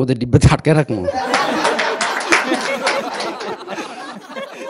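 An audience laughs and claps.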